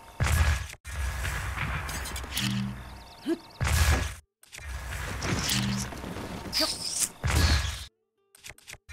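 A shimmering magic ring hums and crackles.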